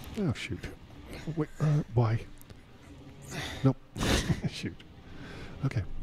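A man groans in pain.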